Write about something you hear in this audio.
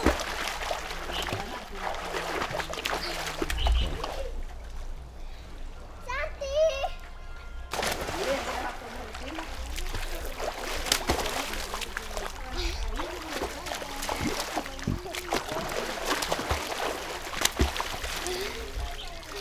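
Children splash about in water.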